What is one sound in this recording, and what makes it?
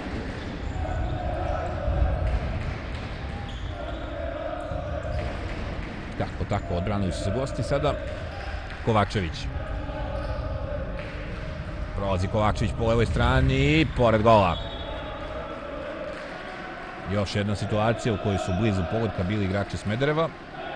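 Players' shoes squeak on a hard court in an echoing hall.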